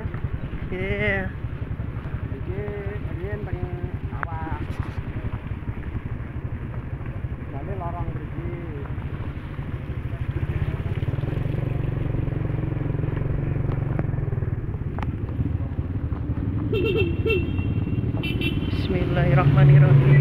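A motorcycle engine rumbles steadily as it rides along.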